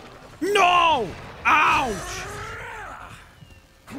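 A large beast lets out deep, rumbling roars.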